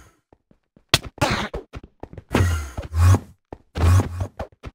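A sword strikes a creature with sharp hits.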